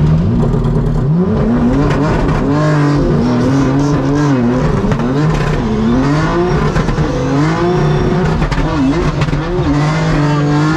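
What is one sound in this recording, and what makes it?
A second car's engine revs and wails up and down close alongside.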